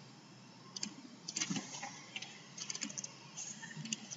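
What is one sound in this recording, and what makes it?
Keyboard keys click briefly as someone types.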